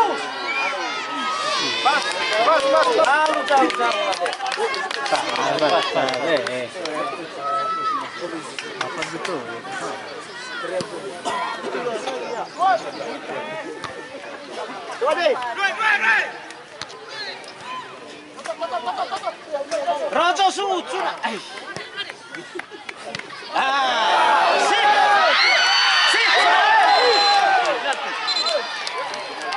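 A large crowd of spectators chatters and shouts outdoors.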